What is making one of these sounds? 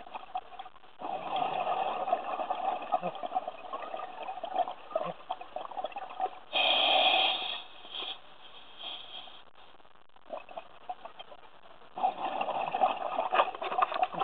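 Air bubbles gurgle and rush in bursts from a scuba diver's regulator underwater.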